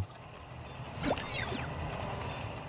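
A short electronic chime sounds as a menu pops up.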